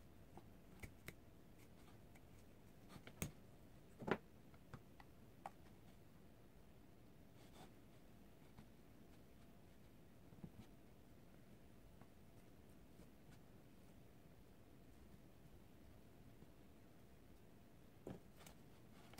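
Hands rustle and handle a doll's synthetic hair up close.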